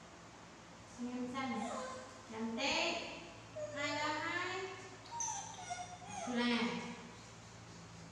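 A woman talks calmly and softly, close by.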